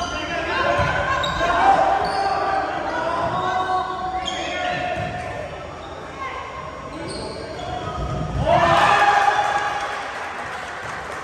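Young men call out to each other loudly across the court.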